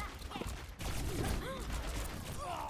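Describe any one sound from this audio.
A grenade bursts with a sharp bang.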